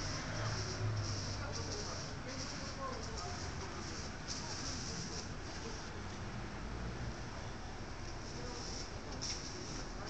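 A rubber mould scrapes on a wooden board.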